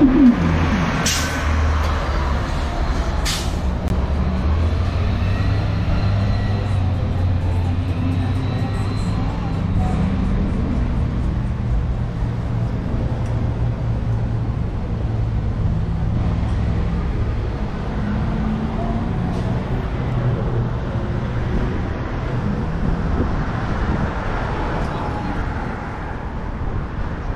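Cars drive past on a nearby street with a steady low rumble.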